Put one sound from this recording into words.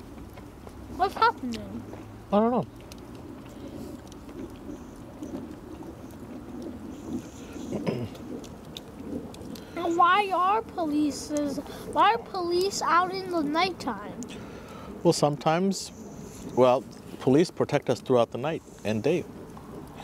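A child talks with animation close by.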